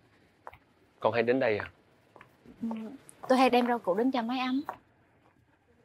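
A young man speaks up close, with animation.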